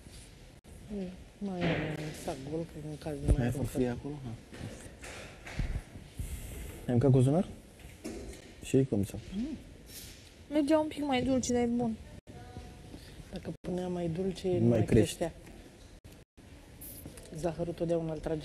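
An older woman talks calmly nearby.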